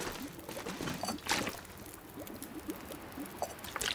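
A fire crackles in a stove.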